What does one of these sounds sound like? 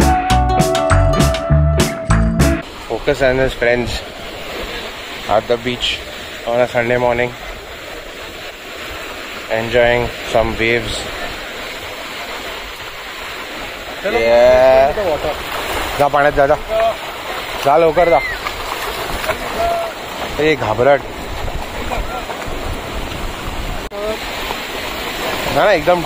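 Shallow waves wash and lap over sand.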